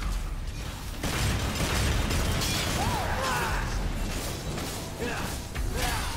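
Loud impacts thud and rumble.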